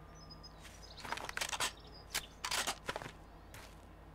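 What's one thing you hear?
A rifle bolt clicks and clacks as the rifle is reloaded.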